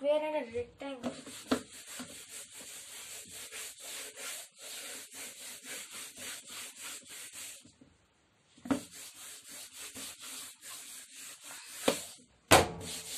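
A duster rubs back and forth across a whiteboard in quick strokes.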